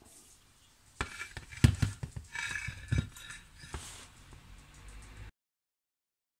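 Metal engine parts knock and clatter as they are handled.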